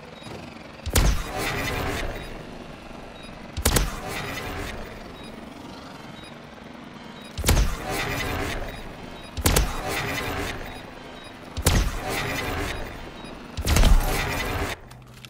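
A heavy gun fires loud single blasts, each followed by a ringing rumble.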